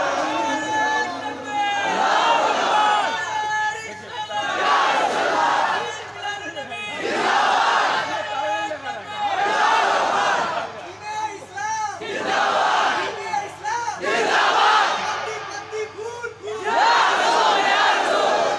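A man sings loudly and fervently through a loudspeaker system.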